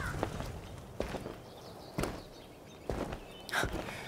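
Footsteps thud slowly on dirt.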